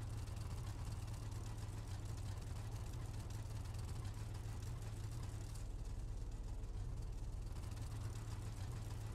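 A car engine idles with a low, steady rumble.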